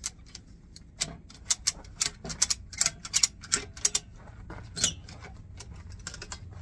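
A ratchet strap clicks rapidly as it is tightened.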